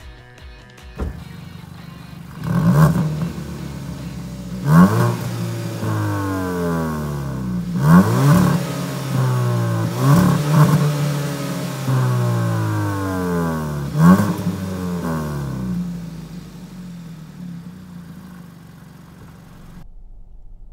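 A car engine revs up sharply several times, roaring and popping through the exhaust.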